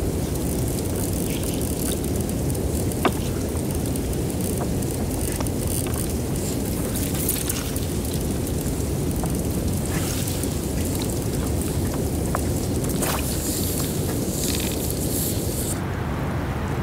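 Meltwater trickles and gurgles deep in the ice, with faint crackles and pops.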